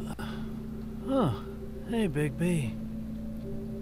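A second man answers in a drowsy, slurred voice.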